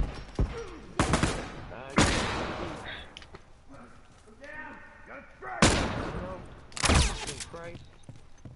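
Gunshots ring out nearby and echo.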